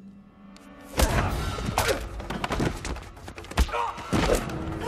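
Punches and heavy thuds land in a scuffle.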